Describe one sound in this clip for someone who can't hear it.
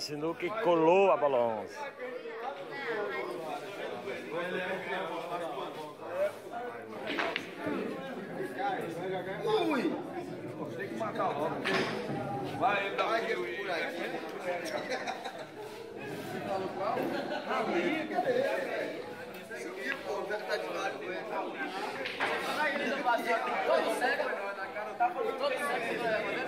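A group of men talk and chatter close by.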